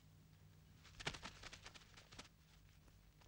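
Fighters scuffle and strike quick blows.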